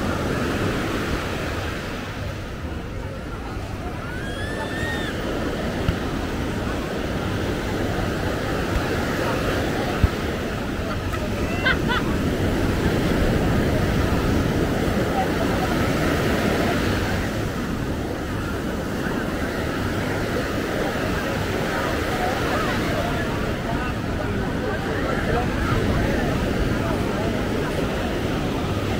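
Waves break and wash onto the shore.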